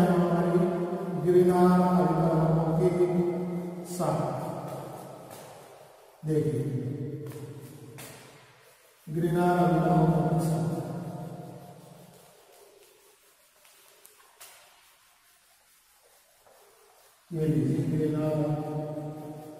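A middle-aged man speaks steadily and loudly, as if lecturing, in an echoing room.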